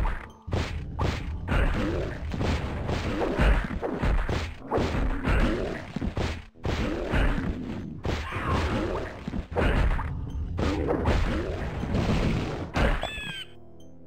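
Heavy blows land with dull, crunching thuds.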